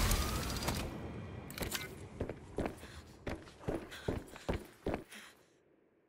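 Footsteps clank on a metal floor.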